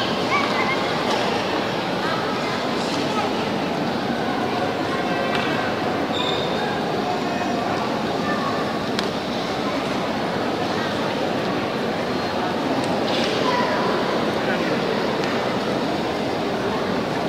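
A large congregation murmurs and chatters in an echoing hall.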